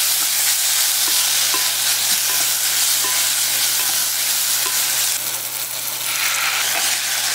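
A wooden spoon stirs a thick, wet mixture in a bowl with soft squelching.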